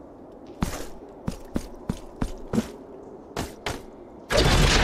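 Video game sword slashes and hits ring out in quick bursts.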